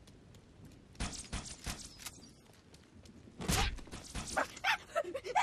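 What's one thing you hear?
Energy shots zap in quick rapid bursts.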